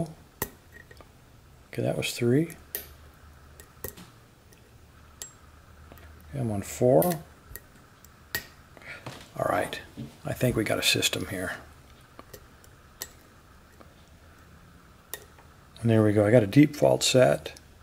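Metal lock picks tick and scrape inside a lock cylinder.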